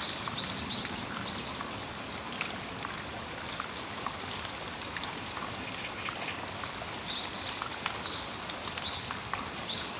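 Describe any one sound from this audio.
Steady rain falls outdoors.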